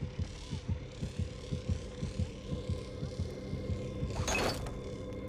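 Heavy footsteps thud quickly on a hard floor.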